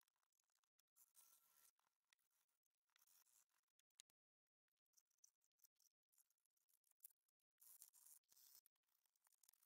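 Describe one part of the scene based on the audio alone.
A cotton swab scrubs and scratches against hard plastic.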